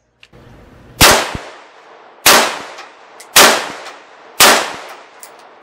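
Rifle shots crack loudly outdoors, one at a time.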